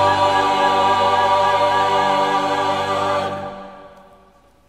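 A choir sings in a large echoing hall.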